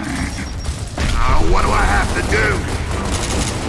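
A man shouts with urgency.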